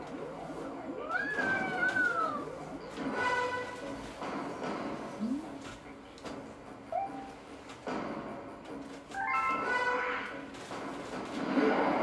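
Chiming sound effects ring out from a television.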